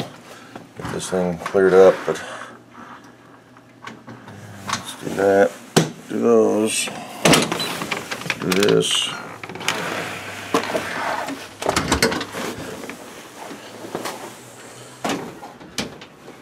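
A jacket's fabric rustles and brushes close by.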